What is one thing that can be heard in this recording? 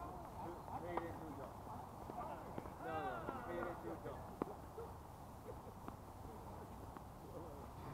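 Tennis balls are struck with rackets with sharp pops.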